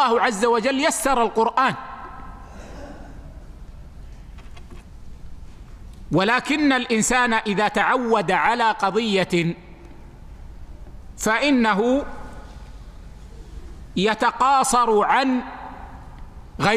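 An elderly man speaks calmly and steadily into a microphone, in short phrases with pauses.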